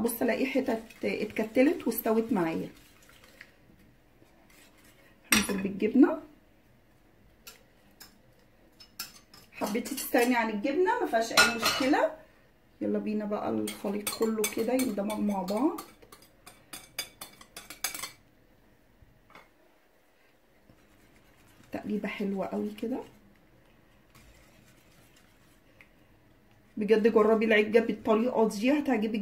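A spoon scrapes and clinks against a bowl as food is stirred.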